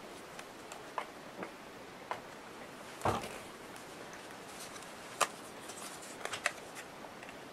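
Small objects tap and knock on a table.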